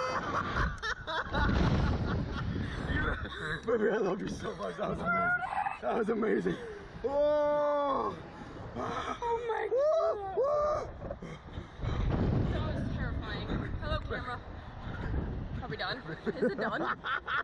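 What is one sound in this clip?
A young man laughs excitedly close by.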